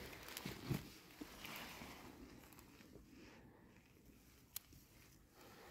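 Dry leaves rustle on the ground as a deer's head is lifted and turned.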